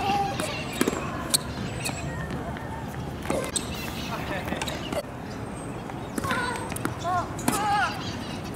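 Tennis balls pop off rackets outdoors.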